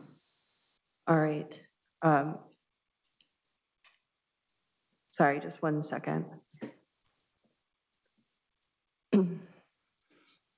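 A young woman speaks calmly through a microphone, with pauses.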